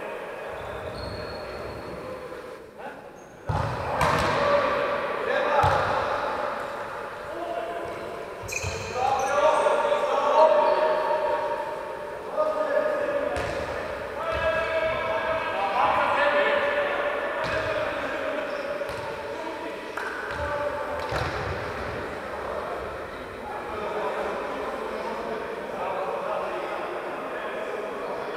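Sneakers squeak on the hard court.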